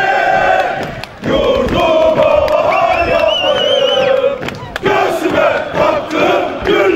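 A group of men sings a marching song loudly in unison outdoors.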